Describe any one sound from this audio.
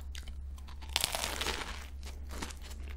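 Pastry crunches loudly as a young woman bites into it.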